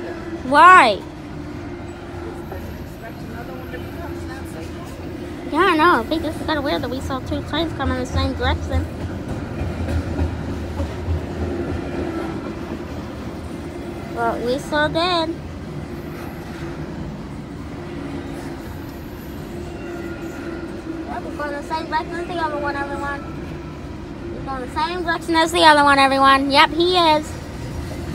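A long freight train rumbles and clatters steadily past nearby.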